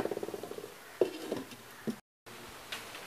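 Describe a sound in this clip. A clay lid knocks onto a clay pot.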